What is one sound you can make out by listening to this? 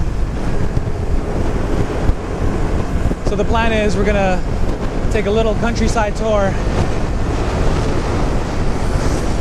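Wind buffets and roars loudly past a moving scooter.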